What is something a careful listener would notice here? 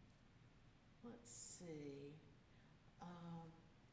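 A woman speaks slowly through a microphone in a large echoing hall.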